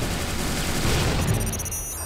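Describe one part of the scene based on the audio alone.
A grenade explodes with a heavy boom.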